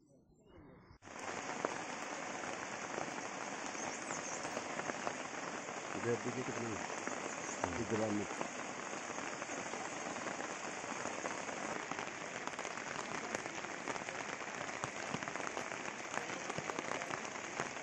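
A stream rushes over rocks close by.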